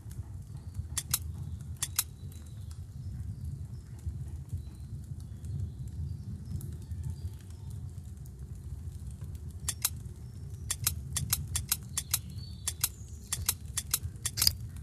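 Game stones slide into place with short bright clicks.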